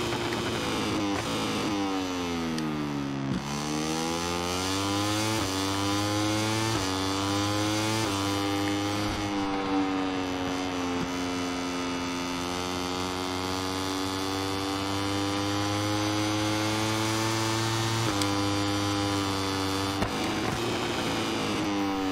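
A motorcycle engine roars, its pitch dropping as it slows and rising through the gears as it speeds up.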